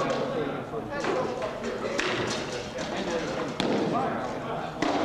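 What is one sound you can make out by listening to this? Wooden weapons strike against each other with sharp knocks.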